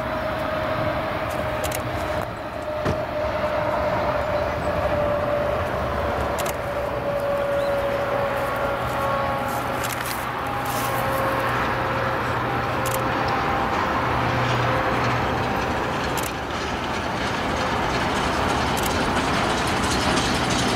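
A steam locomotive chugs steadily, drawing closer.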